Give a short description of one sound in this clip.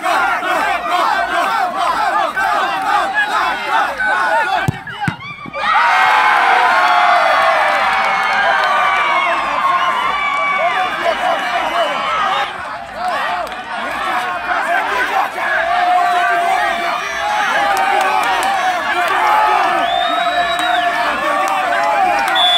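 A large crowd of spectators chatters and shouts outdoors.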